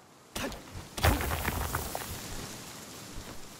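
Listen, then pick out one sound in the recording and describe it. Rock crumbles and bursts apart with a rumbling crash.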